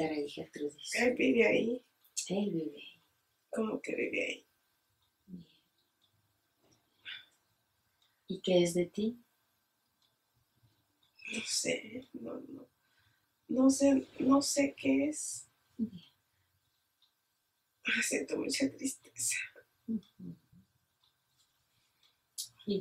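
A woman speaks calmly nearby, pausing now and then.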